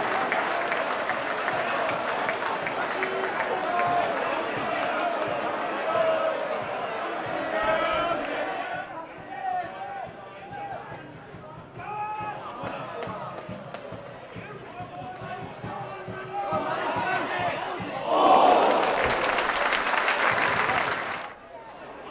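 A large crowd roars outdoors.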